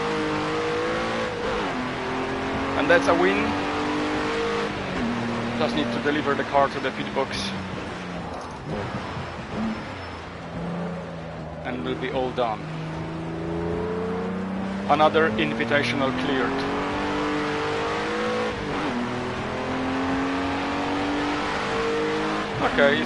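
A race car engine drones and whines, its pitch rising and falling as the car speeds up and slows down.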